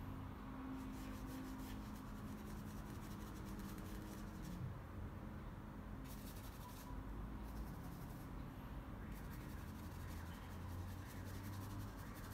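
A paintbrush softly strokes across paper.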